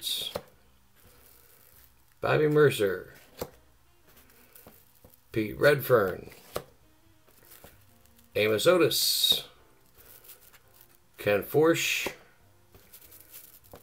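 Trading cards slide and flick against each other in someone's hands.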